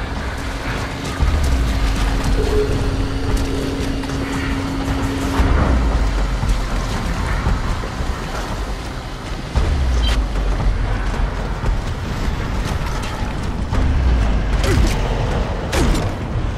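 Heavy armoured footsteps thud and clank on stone.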